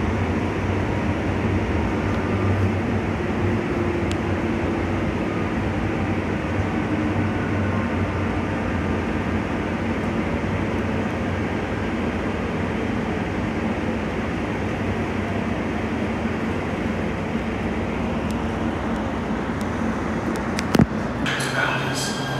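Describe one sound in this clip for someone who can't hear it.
A train rumbles steadily along the tracks from inside the cab.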